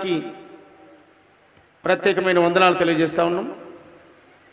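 A man shouts slogans through a microphone and loudspeakers outdoors.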